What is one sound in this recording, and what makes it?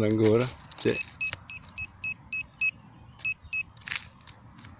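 A handheld metal detector beeps in quick, short pulses.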